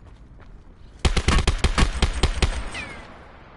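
A rapid burst of gunfire rings out close by.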